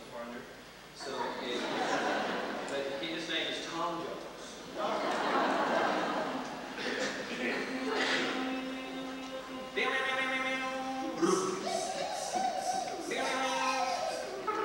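A group of girls sing together on a stage, heard from far back in a large echoing hall.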